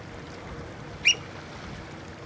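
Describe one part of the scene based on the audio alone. A shorebird gives a short, high call.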